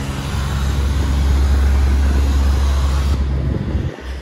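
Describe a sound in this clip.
A pressure washer sprays water hard against stone with a steady hiss.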